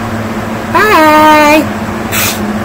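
A man calls out once in a short, high, squeaky cartoon voice close by.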